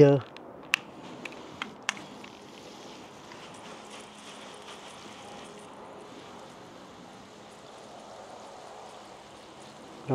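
Water hisses from a garden hose spray nozzle onto potting soil and leaves.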